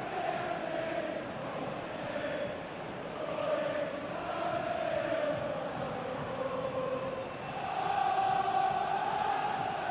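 A large crowd chants and roars steadily in a stadium.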